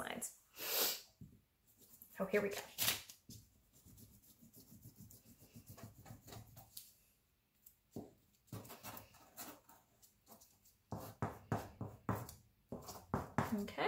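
A paint stick scrubs across paper with soft scratching.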